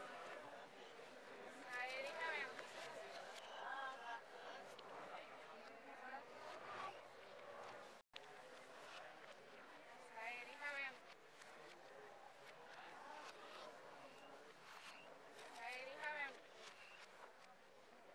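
Several adults talk in the background.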